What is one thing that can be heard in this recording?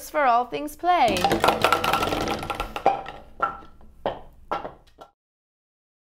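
Plastic bowling pins clatter as a ball knocks them over.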